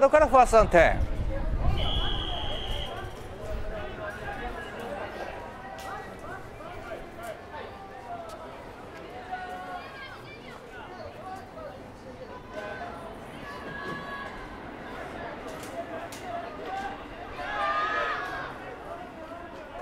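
Young men call out and chatter at a distance.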